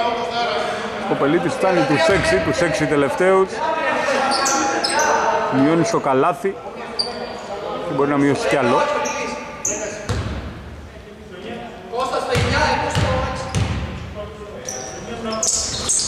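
Young men call out to each other across a large echoing hall.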